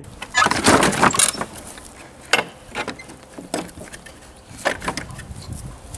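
Wooden fence boards knock and creak.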